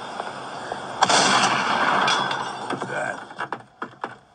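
A wooden door creaks open through a small speaker.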